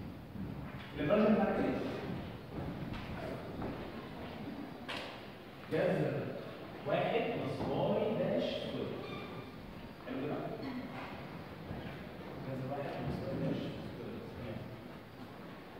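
A young man lectures.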